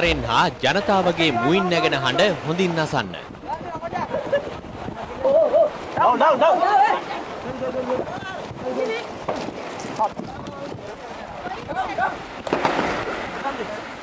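Water splashes as men wade through the shallows.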